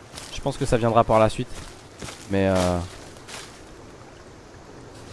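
Footsteps rustle through low plants on a forest floor.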